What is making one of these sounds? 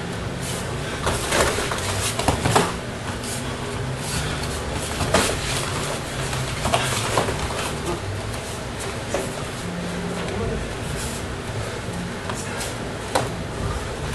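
Bare feet shuffle and stamp on a foam mat.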